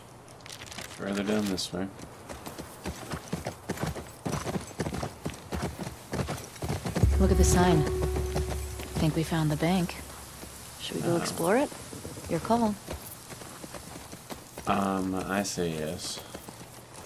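A young man talks close to a microphone.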